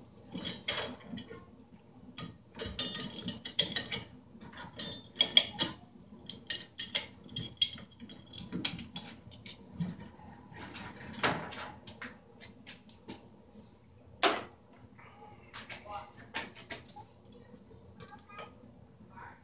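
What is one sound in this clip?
Wires scrape and click against a metal electrical box.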